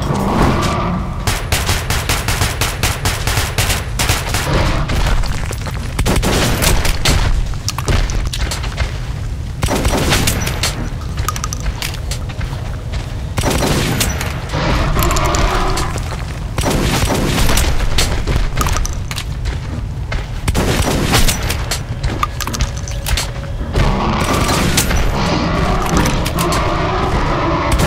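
A shotgun fires blast after blast.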